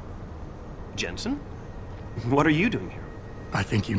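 A man asks a question in a surprised voice.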